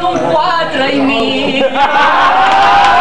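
Several men laugh and chat nearby.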